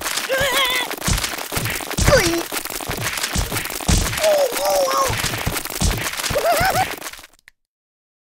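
Blows thump and smack against a cartoon creature, over and over.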